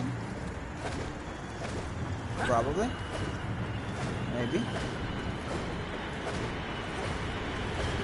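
Wind blows steadily with a low rumble.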